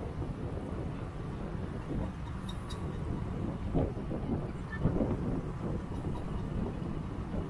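Light traffic drones along a busy street.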